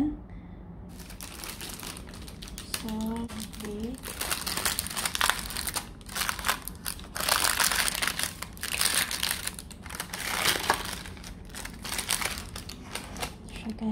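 Parchment paper rustles and crinkles as hands handle it.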